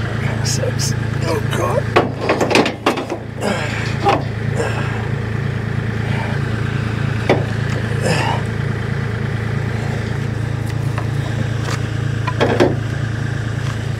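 Stone slabs knock and clatter as workers handle them.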